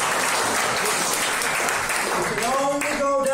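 An audience claps and applauds in a room.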